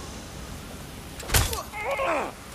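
A fist strikes a man with a heavy thud.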